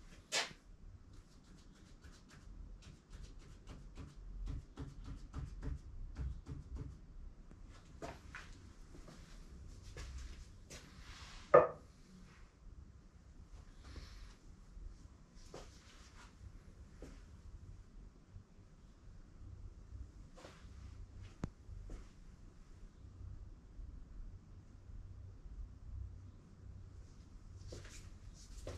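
Footsteps shuffle on a hard floor.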